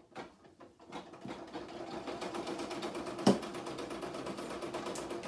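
An embroidery machine runs with a steady, fast rhythmic stitching hum.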